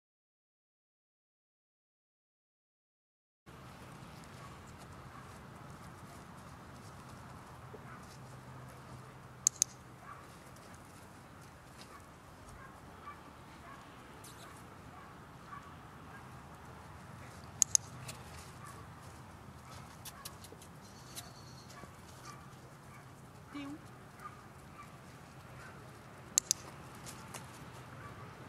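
A woman talks softly to a dog.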